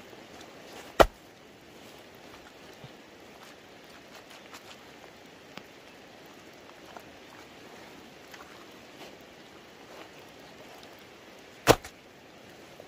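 A heavy stone thuds down onto the ground.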